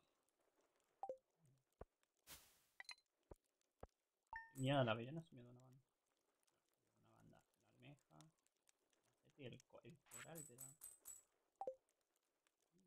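Short game chimes and blips ring out.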